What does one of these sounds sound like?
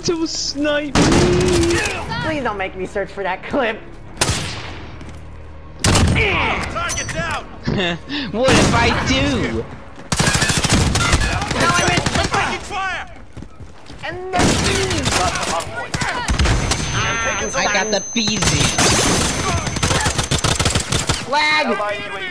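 Rifle and pistol shots ring out sharply, again and again.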